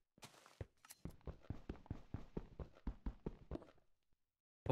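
A pickaxe chips at stone in a video game.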